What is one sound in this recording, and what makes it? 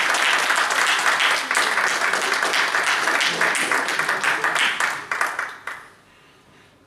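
An audience claps loudly in a room.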